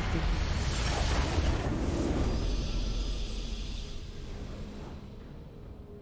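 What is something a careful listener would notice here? A triumphant game victory fanfare swells and then fades away.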